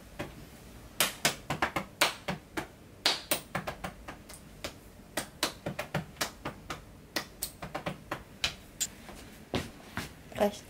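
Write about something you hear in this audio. Hands pat and tap on legs in quick soft knocks.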